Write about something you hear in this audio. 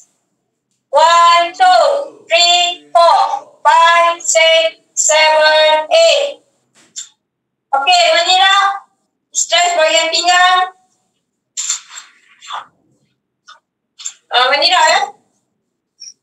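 A woman speaks calmly, heard through an online call.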